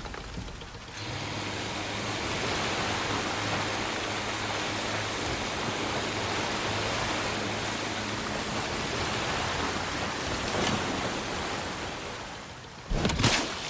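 Water splashes and churns in the boat's wake.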